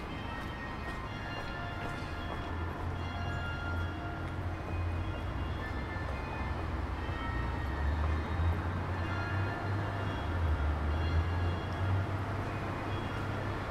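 Cars drive by on a wet street nearby.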